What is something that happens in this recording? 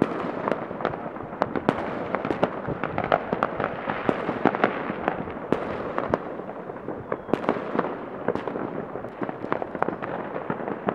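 Fireworks bang and crackle in the distance, one burst after another.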